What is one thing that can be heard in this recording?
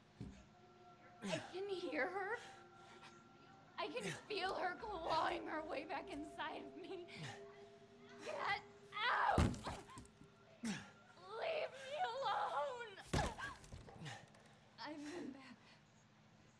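A young woman screams and moans in distress close by.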